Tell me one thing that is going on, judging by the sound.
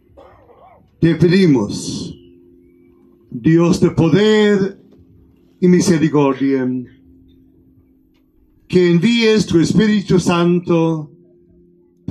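An elderly man speaks slowly and solemnly into a microphone, heard through loudspeakers in an echoing room.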